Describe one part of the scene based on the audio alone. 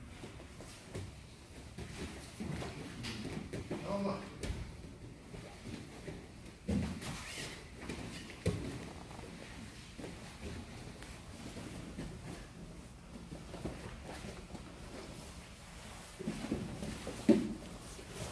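Grappling bodies shuffle and thump on a padded mat.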